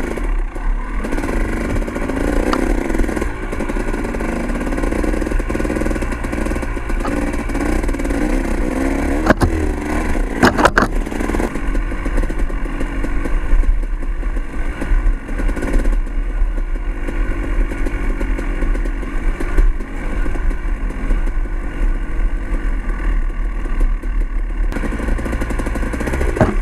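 A motorcycle engine revs up and down steadily throughout.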